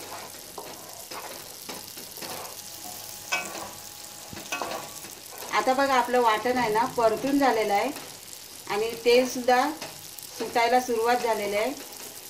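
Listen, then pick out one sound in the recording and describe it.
A spoon scrapes and stirs food in a pan.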